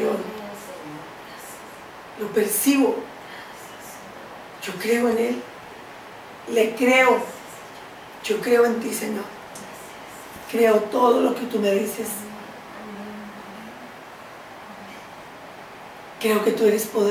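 A middle-aged woman speaks slowly and clearly in short phrases.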